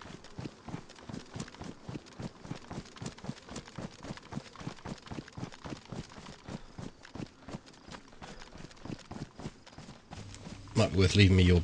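Footsteps swish rhythmically through tall grass.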